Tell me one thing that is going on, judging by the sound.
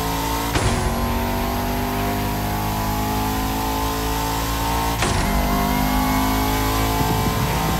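A high-revving car engine roars steadily as the car speeds up.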